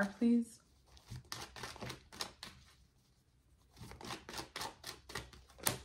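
Playing cards rustle and flick as they are shuffled.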